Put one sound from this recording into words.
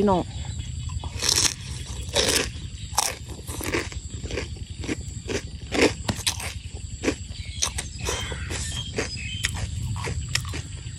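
A young woman chews crunchy food with her mouth close to the microphone.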